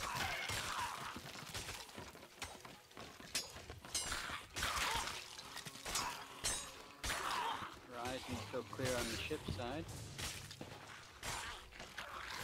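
Swords swish through the air and strike.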